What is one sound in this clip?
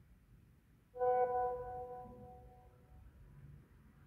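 A phone plays a short chime as a message arrives.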